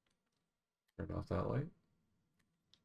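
A man speaks briefly and calmly into a microphone.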